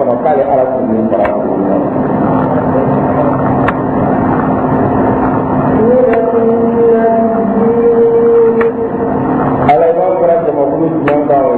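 A man chants in a long, drawn-out melodic voice into a microphone.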